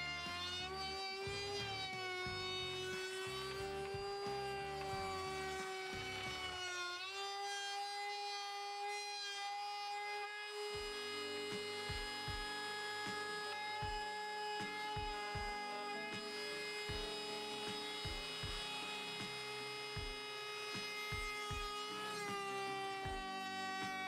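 A handheld power router whines steadily as it cuts wood.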